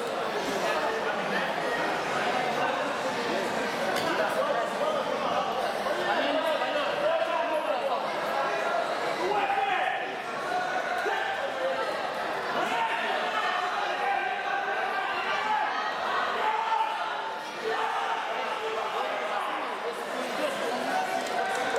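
A man talks to a boy at close range in a large echoing hall.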